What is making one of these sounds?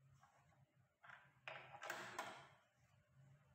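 Metal parts scrape and clatter as they are fitted together.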